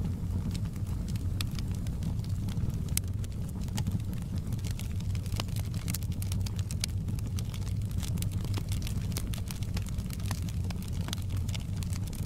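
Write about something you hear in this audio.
Flames roar with a low steady rumble.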